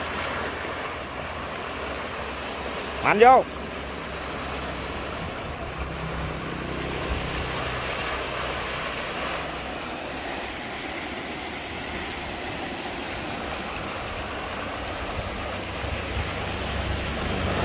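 Water gushes steadily from a pipe outdoors.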